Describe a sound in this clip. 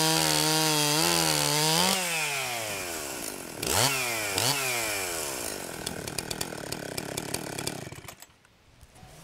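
A chainsaw engine roars, revs up and down, then cuts off.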